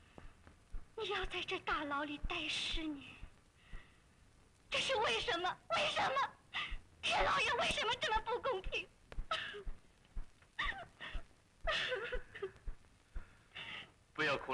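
A young woman speaks emotionally, close by, in a pleading voice.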